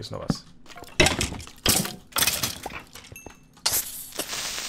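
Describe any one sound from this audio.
A sword strikes a skeleton with sharp hits.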